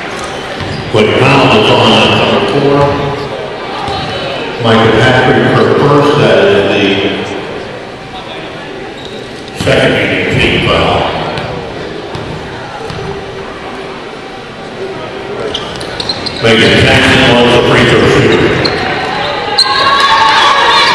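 A crowd cheers loudly in a large echoing gym.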